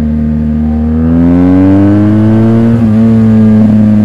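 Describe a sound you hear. A motorcycle engine revs up, rising in pitch, then settles.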